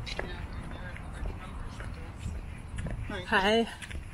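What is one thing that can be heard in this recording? Footsteps pass by on a pavement outdoors.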